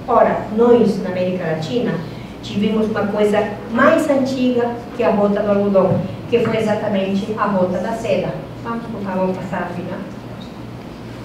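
A woman speaks with animation through a microphone in a large echoing room.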